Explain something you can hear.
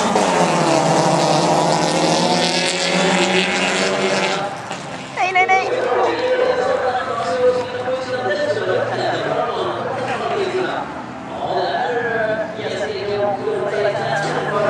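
Racing car engines roar and rev loudly.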